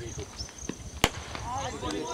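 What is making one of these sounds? A cricket bat sharply cracks against a ball.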